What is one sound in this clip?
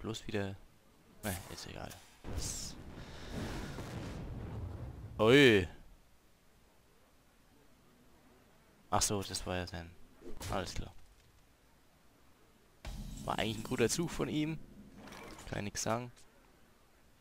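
Magical game effects whoosh and chime.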